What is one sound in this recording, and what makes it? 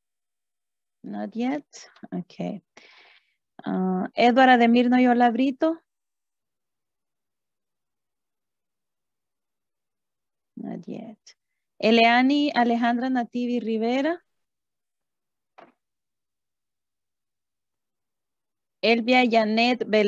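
A woman speaks calmly over an online call, in bursts with pauses.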